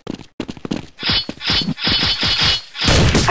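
A rifle fires in short, loud bursts.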